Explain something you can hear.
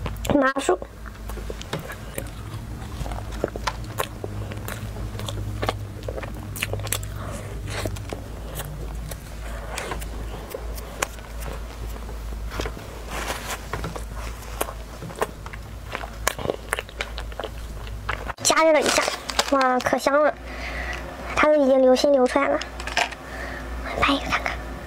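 Flaky pastry crackles as fingers break it apart.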